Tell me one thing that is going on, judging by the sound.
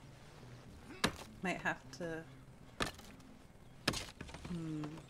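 An axe chops wood with sharp knocks.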